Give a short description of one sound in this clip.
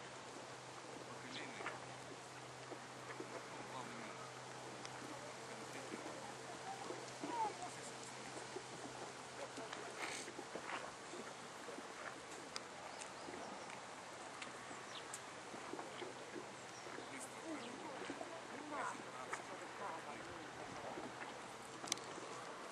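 Water laps gently in a steady wash outdoors.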